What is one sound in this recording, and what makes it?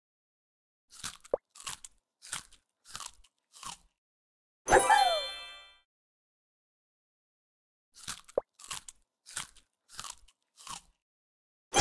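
A cartoon creature munches with quick crunchy bites.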